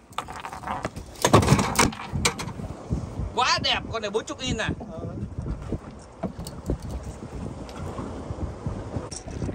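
A fish flaps and thumps against a boat deck.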